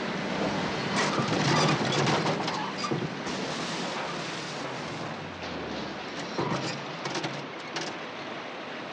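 Metal tears and clatters.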